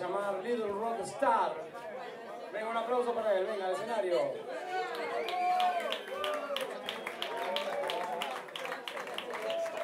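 A live blues band plays through loudspeakers.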